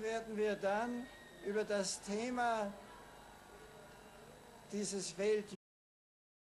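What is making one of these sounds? An elderly man reads out a speech slowly into a microphone, outdoors.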